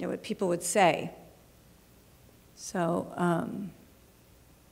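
A woman speaks calmly into a microphone in short phrases.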